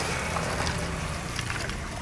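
Liquid pours into a plastic bag.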